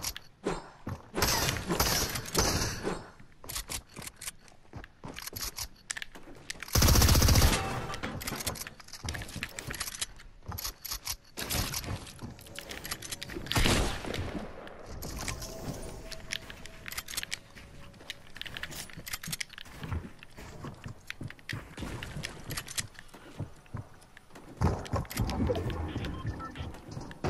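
Video game gunshots and building clicks sound in quick bursts.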